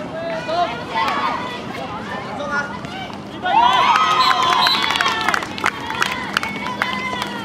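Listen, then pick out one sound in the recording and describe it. Young players shout to each other.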